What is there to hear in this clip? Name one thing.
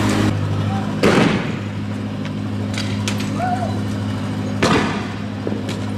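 Petrol bombs burst into flames against a vehicle with sharp whooshes.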